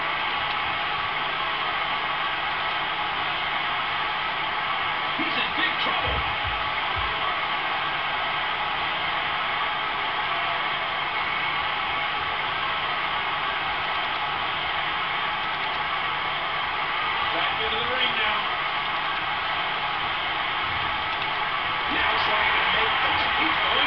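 A crowd cheers loudly and steadily.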